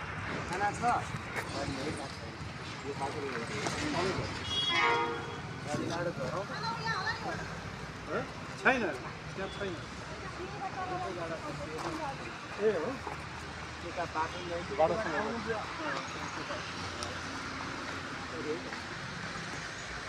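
Young men talk with animation nearby outdoors.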